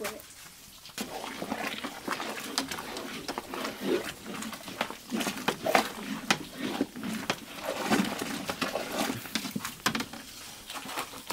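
A wooden paddle stirs and knocks inside a large pot of boiling water.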